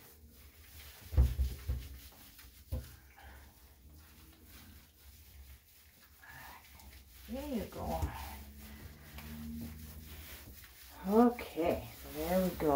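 Hands rub and squelch through wet feathers.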